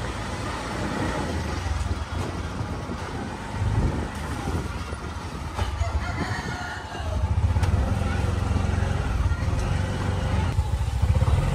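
A motorised rickshaw engine rumbles steadily as it drives along.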